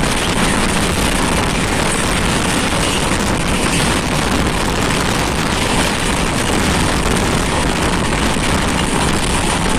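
A moving train rumbles and rattles steadily over the rails.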